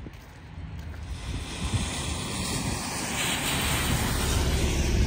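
A bus drives past on a wet road.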